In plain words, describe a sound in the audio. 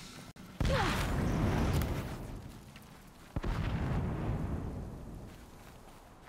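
A climber scrambles and grips on rock.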